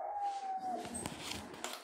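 A kitten mews close by.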